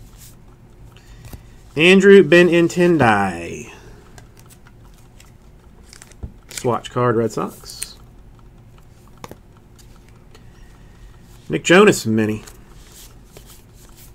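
Trading cards rustle and slide against each other in hands, close by.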